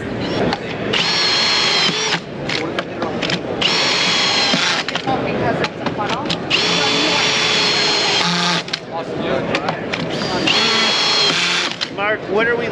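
A power saw whines in short bursts, cutting wood.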